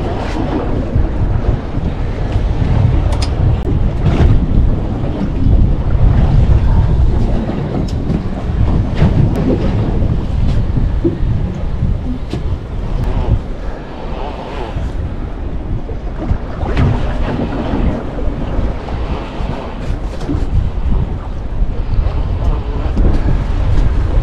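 Choppy sea water splashes against a boat's hull.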